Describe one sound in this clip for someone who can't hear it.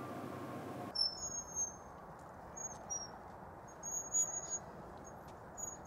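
Swing chains creak softly as a swing moves back and forth.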